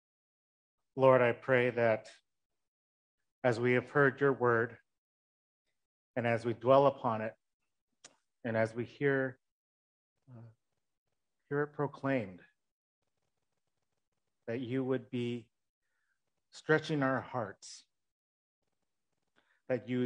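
A middle-aged man speaks calmly in short phrases over an online call, with pauses between them.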